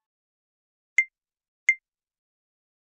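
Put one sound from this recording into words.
Short game clicks sound twice as buttons are tapped.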